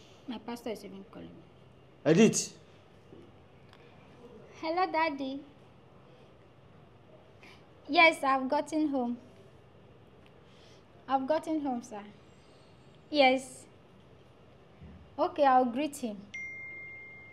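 A young woman talks on a phone with animation, close by.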